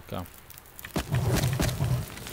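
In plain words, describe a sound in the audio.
A fire flares up with a whoosh.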